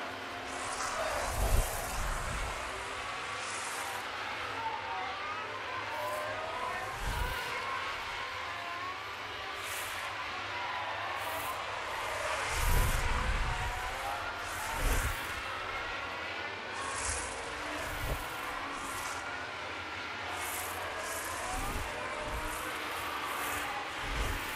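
Racing car engines scream past at high speed.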